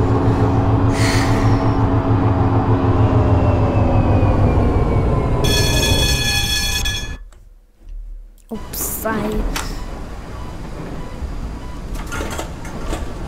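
Rain patters on a tram's windscreen.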